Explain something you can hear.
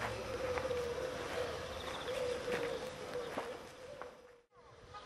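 A woman speaks close by, outdoors.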